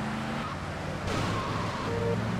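A car scrapes against another car with a short thud.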